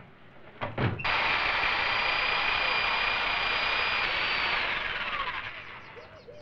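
An electric hedge trimmer buzzes loudly, then winds down.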